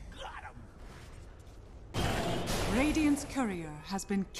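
Magic spells burst and crackle in a fast fantasy battle.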